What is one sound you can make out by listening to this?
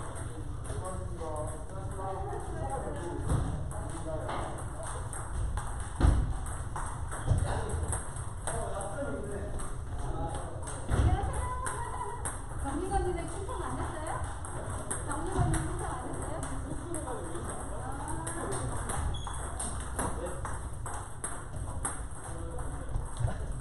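Table tennis balls click off paddles and tables in a large hall.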